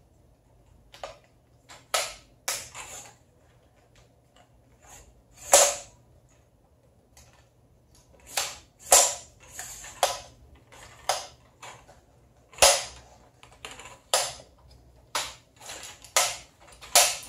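Metal tripod clamps click and snap.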